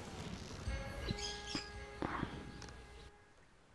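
A bright electronic chime rings out with a few steady tones.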